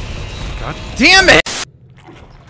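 A monster lets out a loud, shrill shriek.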